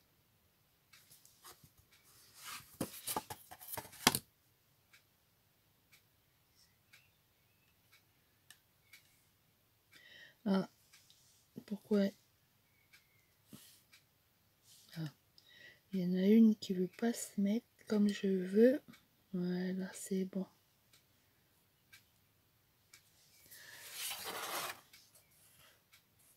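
A cardboard board slides and rustles across a cutting mat.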